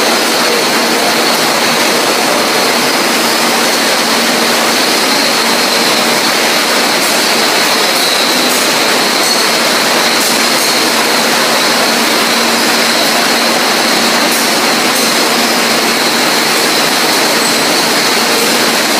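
Bottling machinery whirs and rattles steadily.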